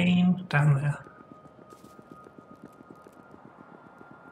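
Quick light footsteps tap steadily.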